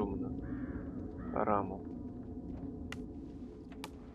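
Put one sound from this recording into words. A wooden window creaks open.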